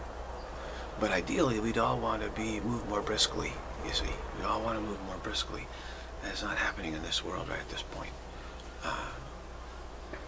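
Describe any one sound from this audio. A middle-aged man speaks calmly and close up.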